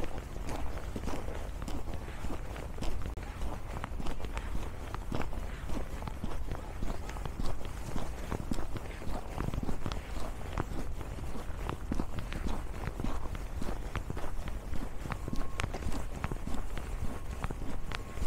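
Footsteps crunch steadily on packed snow.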